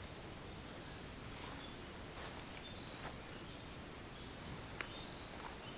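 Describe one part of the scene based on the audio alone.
Dogs scuffle and tussle playfully on grass.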